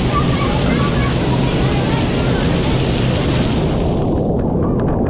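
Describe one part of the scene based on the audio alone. Water rushes loudly down a slide.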